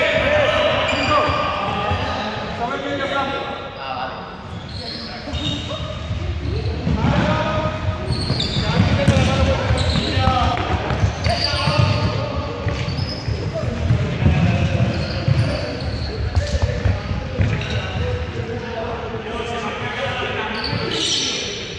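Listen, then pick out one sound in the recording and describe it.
Young people shout and chatter in an echoing sports hall.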